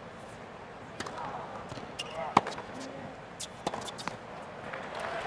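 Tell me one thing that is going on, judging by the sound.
A racket strikes a tennis ball with sharp pops.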